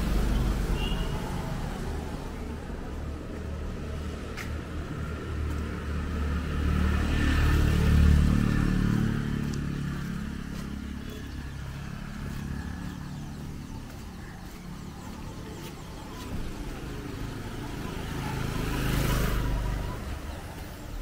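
A motorbike passes by on a wet road.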